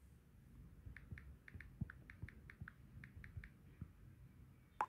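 Keyboard taps click quickly on a phone.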